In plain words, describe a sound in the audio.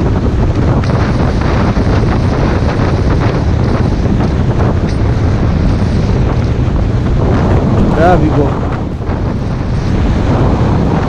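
Wind roars loudly past a motorcycle rider outdoors.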